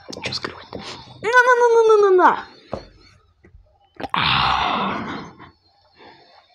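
A young boy talks with animation close to a microphone.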